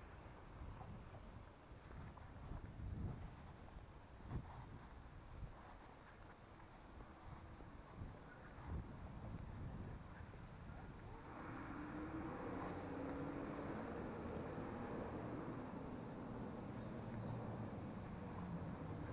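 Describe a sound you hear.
Bicycle tyres rumble over paving stones, growing rougher and louder partway through.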